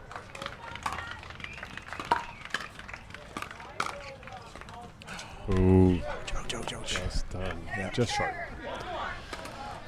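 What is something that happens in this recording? Paddles pop sharply against a plastic ball in a quick rally.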